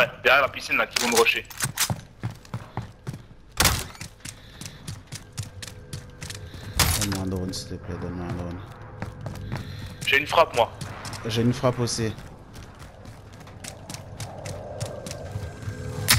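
Quick footsteps run across hard ground.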